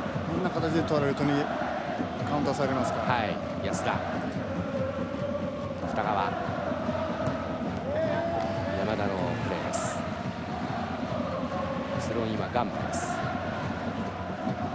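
A large stadium crowd roars and chants steadily in the distance.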